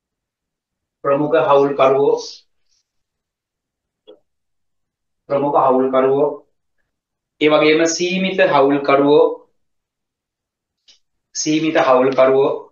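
A man speaks calmly and clearly into a microphone, pausing between phrases.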